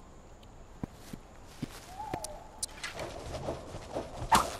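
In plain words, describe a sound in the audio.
Leaves and branches rustle as someone pushes through dense brush.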